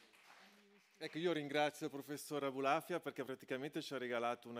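A man speaks calmly into a microphone over loudspeakers.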